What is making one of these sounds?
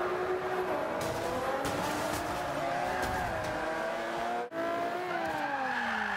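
Tyres screech on asphalt.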